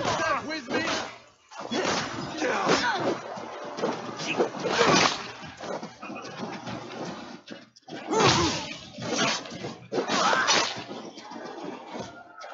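Swords clash and thud in a fight.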